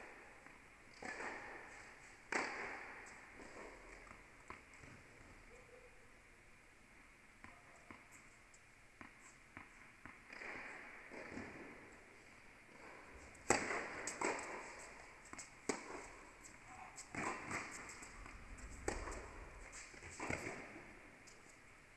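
A tennis ball is struck by rackets in a large echoing hall.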